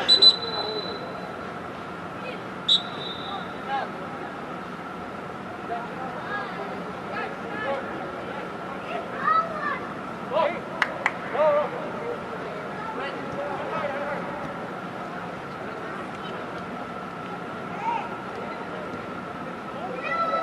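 Players shout to each other across a large echoing indoor field.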